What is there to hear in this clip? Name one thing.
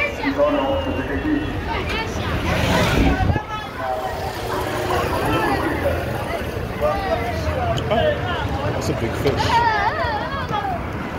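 Men and women talk loudly nearby on a busy street.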